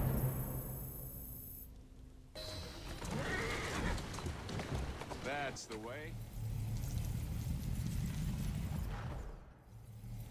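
A horse-drawn carriage rumbles along with clattering wheels.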